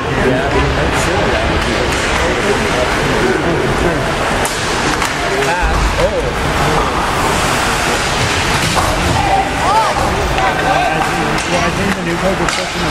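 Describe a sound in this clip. Skates scrape across ice.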